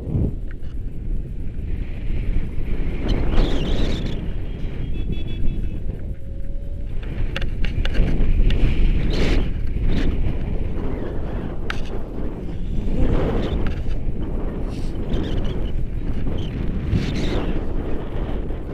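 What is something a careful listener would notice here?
Wind buffets and roars loudly past a microphone outdoors.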